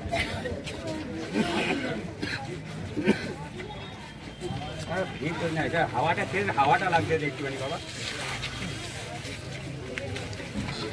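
A crowd of men talks loudly and with agitation close by.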